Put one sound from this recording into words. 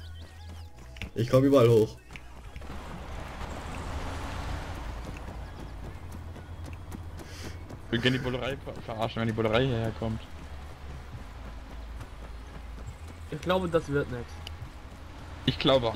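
Footsteps run over dirt and gravel.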